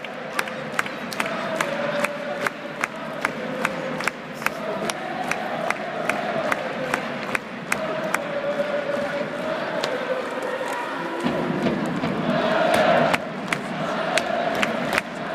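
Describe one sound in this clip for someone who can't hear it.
A large stadium crowd chants in unison.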